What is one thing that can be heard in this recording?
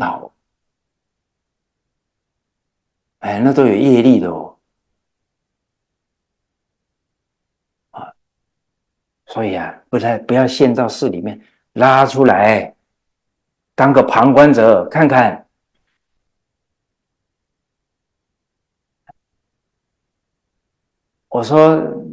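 An elderly man speaks calmly and with animation, in short bursts with long pauses, close to a microphone.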